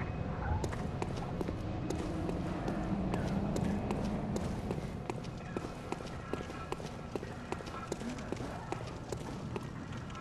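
Footsteps run quickly over stone.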